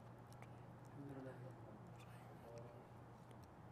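A man murmurs softly nearby.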